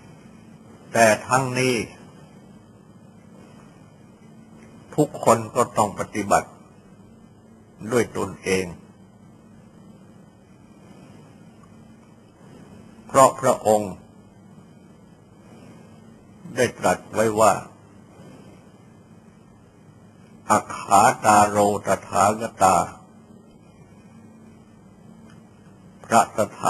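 An elderly man speaks calmly in short phrases with long pauses.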